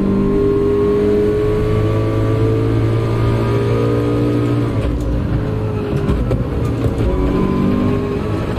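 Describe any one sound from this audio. A race car engine roars at high revs, then drops as the car brakes.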